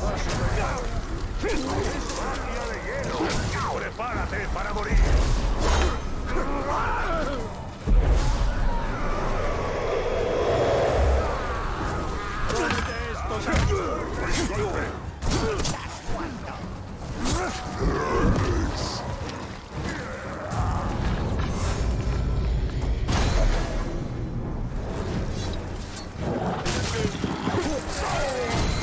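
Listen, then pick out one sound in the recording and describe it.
Rough creatures grunt and roar as they fight.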